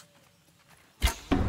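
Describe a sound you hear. A bowstring twangs sharply as an arrow is loosed.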